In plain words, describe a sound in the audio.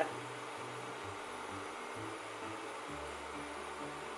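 Oil trickles into an empty metal pot.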